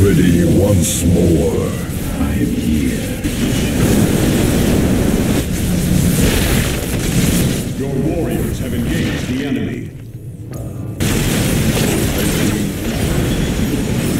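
Laser beams fire and crackle in a game battle.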